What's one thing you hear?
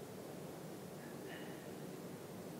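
A metal cup clinks softly against a plate.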